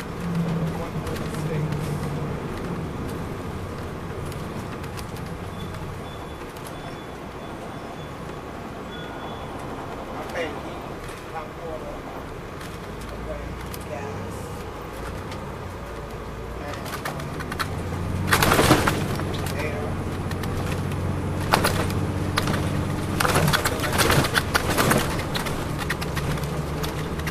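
A diesel coach bus engine hums, heard from inside the bus.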